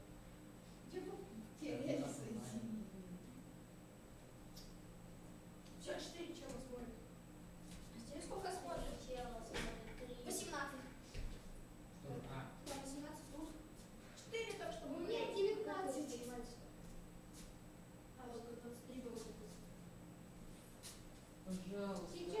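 A woman talks calmly, heard from across a room.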